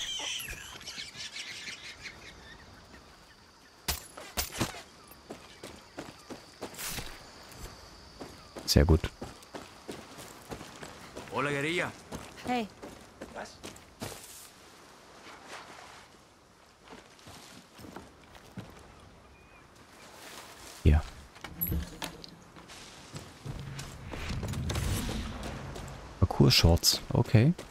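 Footsteps crunch on a dry dirt path.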